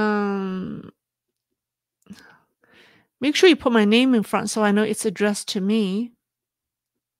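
A middle-aged woman speaks with animation through a microphone.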